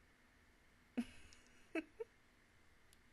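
A young woman laughs briefly, close to a microphone.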